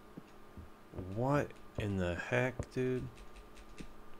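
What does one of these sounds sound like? A young man speaks briefly and animatedly into a nearby microphone.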